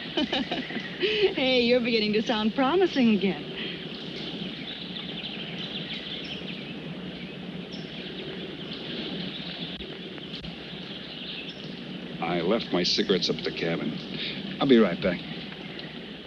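A man speaks in a relaxed, friendly voice close by.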